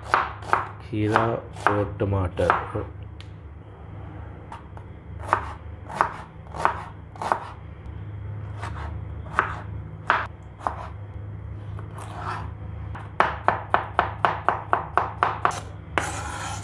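A knife chops through vegetables on a cutting board with quick, sharp knocks.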